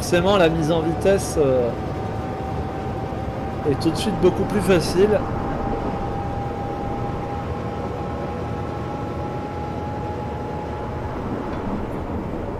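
An electric train motor hums steadily as the train runs.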